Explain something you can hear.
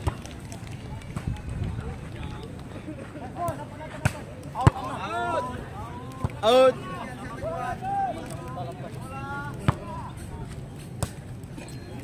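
A ball is struck with thuds during an outdoor game.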